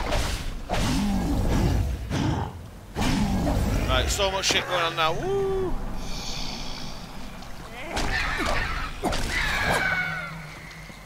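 Magic blasts burst in a video game fight.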